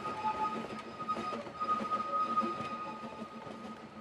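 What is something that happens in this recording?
Railway carriages rumble and clatter along a track.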